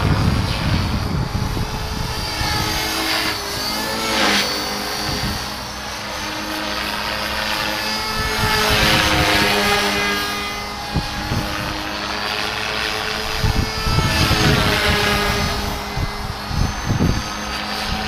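Wind buffets outdoors in gusts.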